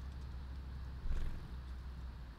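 A small bird's wings flutter briefly.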